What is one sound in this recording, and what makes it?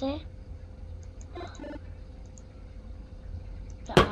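A mouse button clicks a few times.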